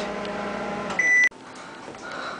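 A microwave oven beeps.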